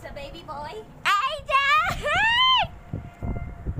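A young child shouts loudly in a high voice nearby.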